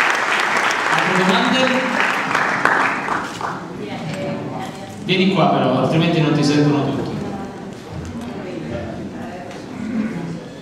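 A young man speaks calmly into a microphone in an echoing hall.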